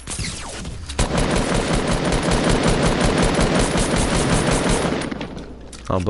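A video-game assault rifle fires in rapid bursts.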